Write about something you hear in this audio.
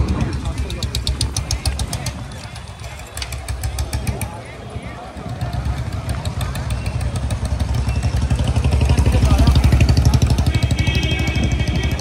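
A motor scooter drives past.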